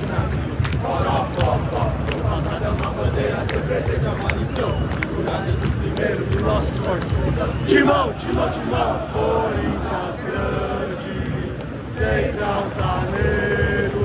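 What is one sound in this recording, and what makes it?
Fans nearby clap their hands in rhythm.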